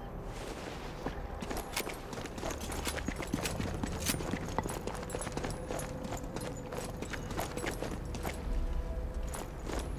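Footsteps crunch on hard ground at a run.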